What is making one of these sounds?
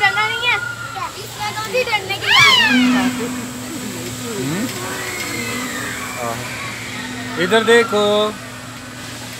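Children shriek and shout excitedly close by.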